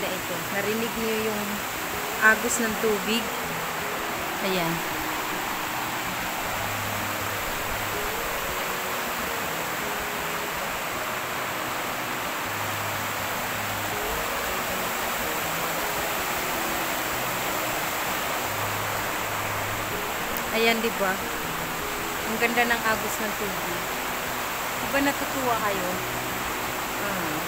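A young woman talks cheerfully close to the microphone.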